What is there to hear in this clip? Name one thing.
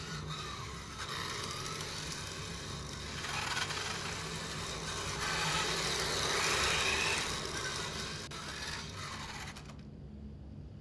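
A toy car's electric motor whirs as it drives fast across the floor.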